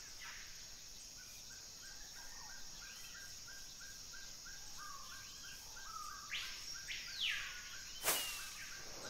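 Footsteps patter softly through grass.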